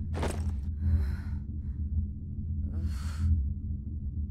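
A young man speaks tensely.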